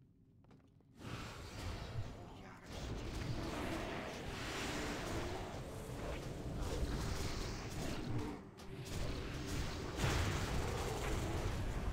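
Magic blasts and weapon hits crash and boom in a fierce fight.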